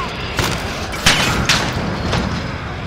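A flamethrower roars.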